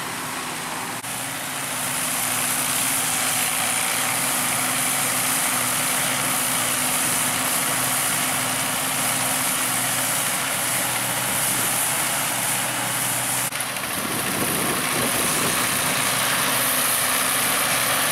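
A combine harvester rattles and whirs as it threshes grain.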